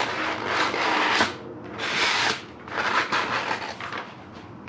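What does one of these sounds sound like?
Paper tears and rustles.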